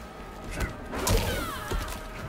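Fire bursts with a loud whoosh.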